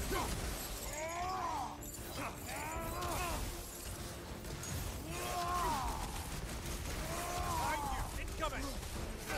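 A blade whooshes through the air.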